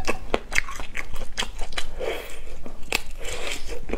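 Sausage skin snaps and crunches as a young woman bites.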